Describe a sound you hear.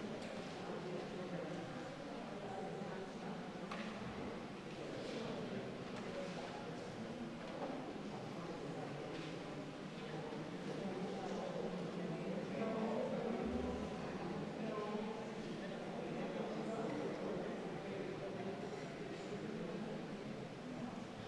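A crowd of men and women sings together in an echoing hall.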